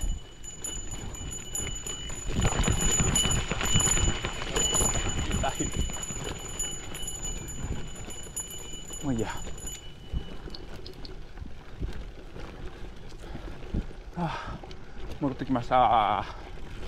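Bicycle tyres roll and bump over a grassy dirt trail.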